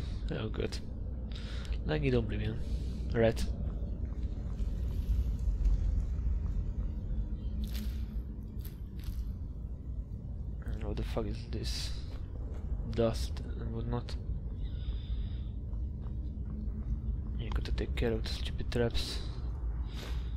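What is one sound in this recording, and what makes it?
Footsteps tread on dirt and stone.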